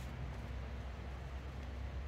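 A dog pants nearby.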